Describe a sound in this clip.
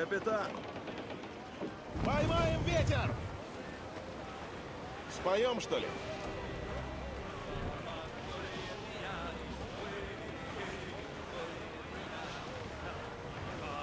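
Wind blows steadily across open water.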